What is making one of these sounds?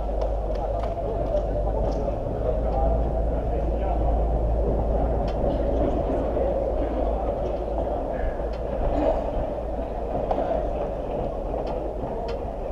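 A football is kicked in a large echoing dome.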